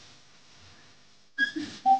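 A young woman speaks with animation over a phone microphone.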